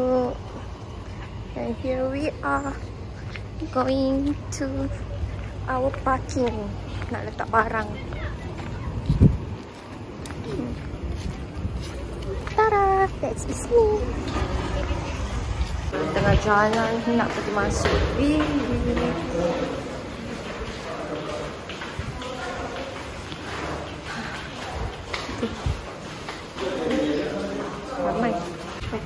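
A young woman talks close by in a lively voice.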